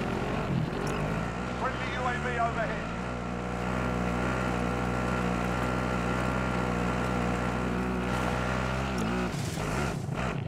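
A quad bike engine drones steadily as it drives along.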